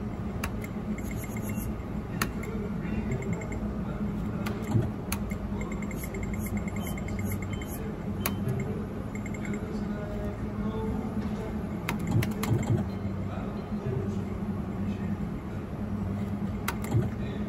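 Buttons click on a gaming machine.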